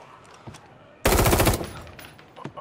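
A rifle fires a short burst of loud shots.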